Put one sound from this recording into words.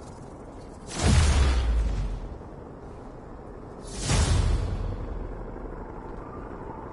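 A loud swelling whoosh sounds twice, then fades.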